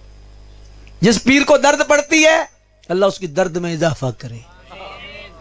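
A man preaches with passion into a microphone, heard through loudspeakers.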